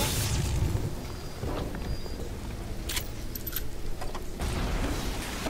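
Water pours and splashes steadily onto a floor.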